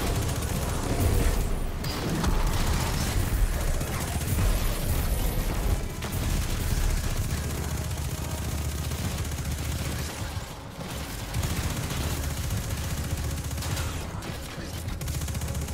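Energy blasts crackle and explode.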